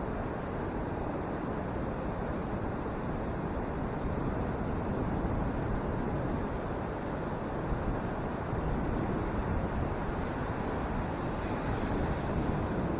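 Waves crash and roll onto the shore in a steady roar.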